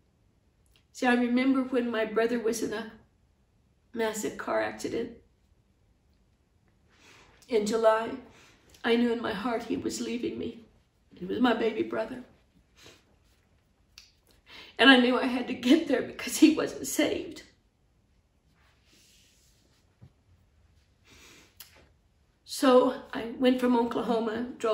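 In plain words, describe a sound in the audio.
A middle-aged woman speaks slowly and emotionally, close to a microphone, with long pauses.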